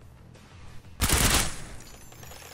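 Gunshots fire in a loud, rapid burst.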